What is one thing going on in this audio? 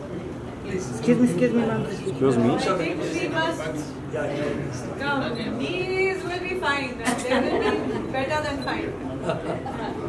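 A man speaks nearby among a small group.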